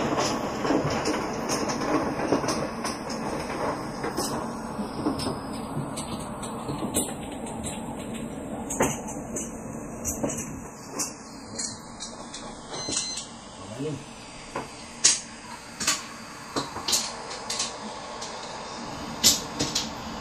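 Plastic mahjong tiles clack sharply against each other and the table.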